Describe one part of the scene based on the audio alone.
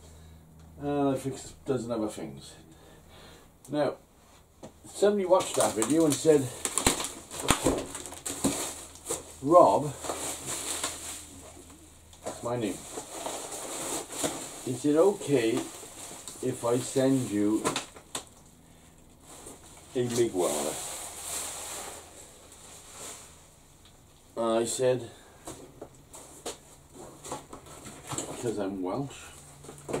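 An older man talks calmly nearby.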